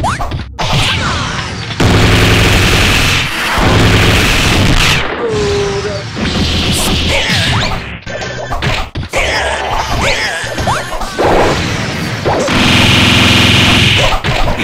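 Punches and blasts hit with sharp, rapid impacts.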